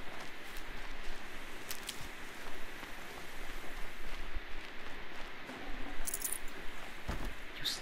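Footsteps crunch through grass as a character runs.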